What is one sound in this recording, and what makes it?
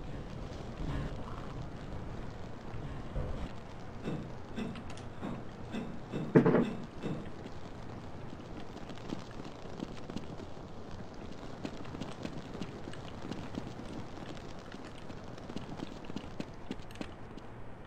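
Footsteps clang on a metal walkway and ladder rungs.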